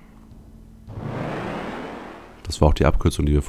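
A heavy stone door grinds open.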